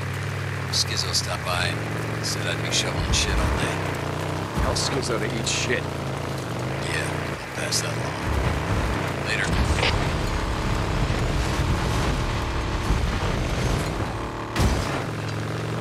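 Tyres crunch on gravel and dirt.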